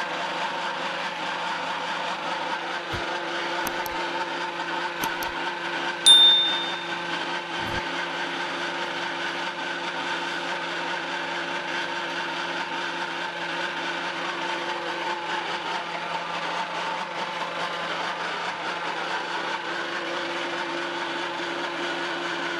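An electric pellet machine hums and whirs steadily.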